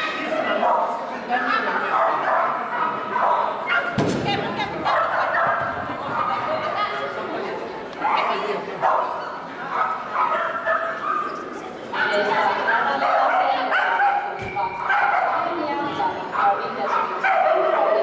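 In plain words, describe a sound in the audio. A woman calls out commands to a dog with animation, in a large echoing hall.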